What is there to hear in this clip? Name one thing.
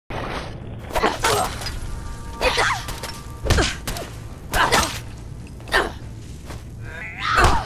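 A heavy weapon strikes with sharp thuds.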